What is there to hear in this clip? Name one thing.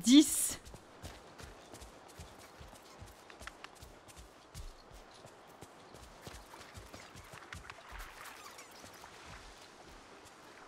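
Footsteps thud quickly and steadily on soft ground.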